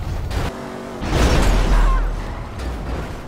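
A car crashes with a loud metallic bang.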